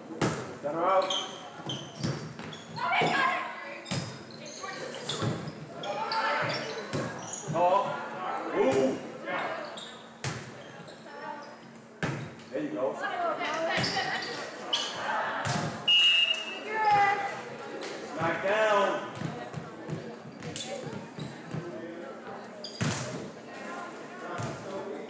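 A volleyball is struck with sharp smacks that echo through a large hall.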